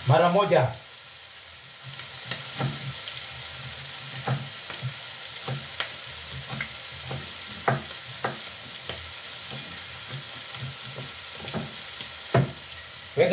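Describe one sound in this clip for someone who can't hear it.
A knife taps on a cutting board as food is chopped.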